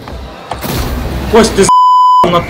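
A goal explosion bursts with a loud boom.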